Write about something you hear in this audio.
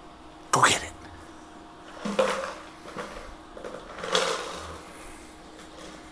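A small dog's paws patter on a wooden floor.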